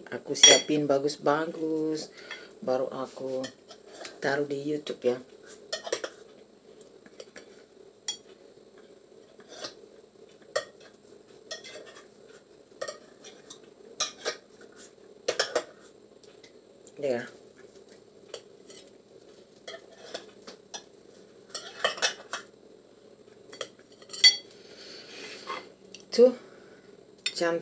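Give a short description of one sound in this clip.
Dishes and utensils clink and knock on a counter.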